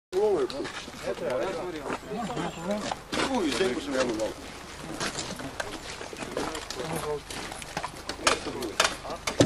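Several men talk loudly nearby, outdoors.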